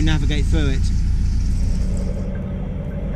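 A middle-aged man speaks close up.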